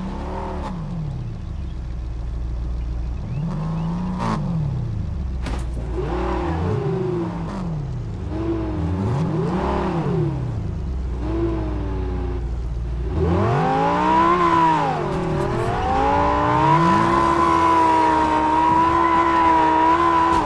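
A sports car engine revs up and down, rising and falling in pitch again and again.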